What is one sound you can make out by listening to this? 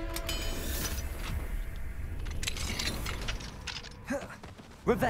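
A heavy metal mechanism grinds and clanks as it turns.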